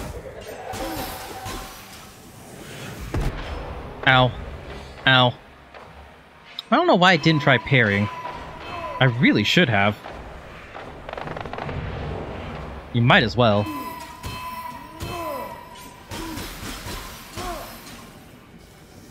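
Magic spells burst and crackle in a video game.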